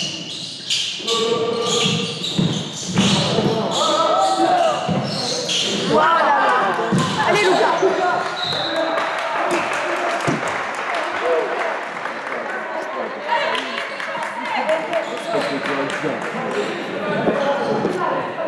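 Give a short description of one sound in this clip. Players shout and call out to each other across the gym.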